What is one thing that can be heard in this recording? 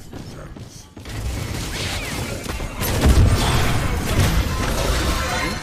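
Game combat sounds blast and crackle loudly.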